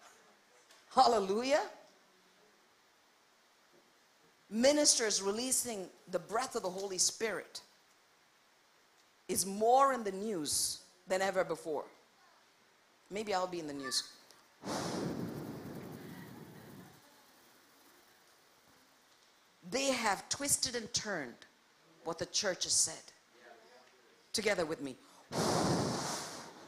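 A woman speaks with passion into a microphone, in short bursts with pauses, heard through loudspeakers.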